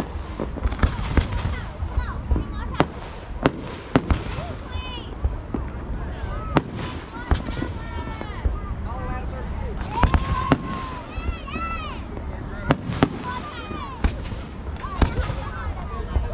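Firework rockets whistle and whoosh as they shoot upward.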